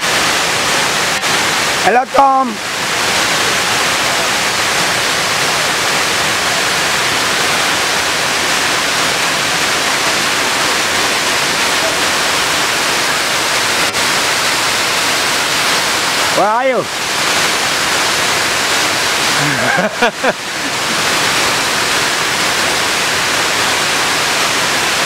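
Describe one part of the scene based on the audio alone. A waterfall roars steadily outdoors.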